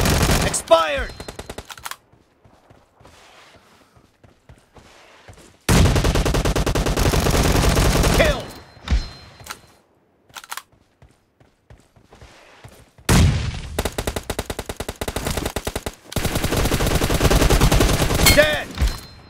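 An automatic rifle fires in rapid bursts, loud and close.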